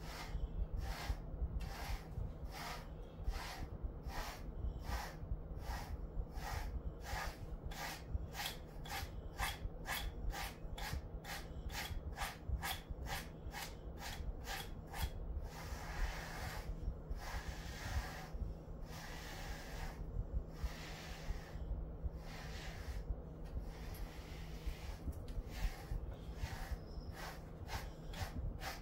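A brush rhythmically scrapes through a dog's fur in quick, steady strokes.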